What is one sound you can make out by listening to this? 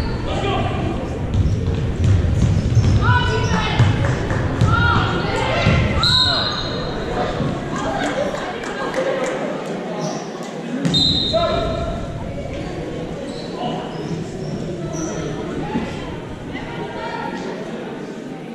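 Players shout and call out across a large echoing gym.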